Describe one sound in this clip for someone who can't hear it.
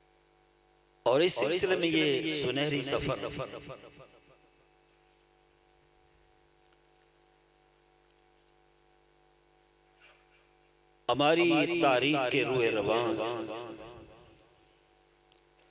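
A middle-aged man speaks with feeling into a microphone, heard through a loudspeaker with a ringing echo.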